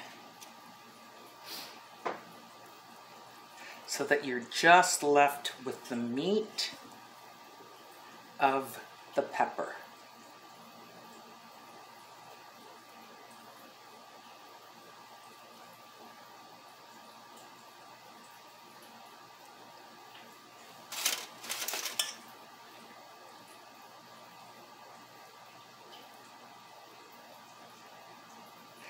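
Hands squelch softly as they peel wet skin from roasted peppers.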